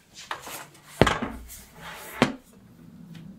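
A metal stove cover clatters as it is lifted open.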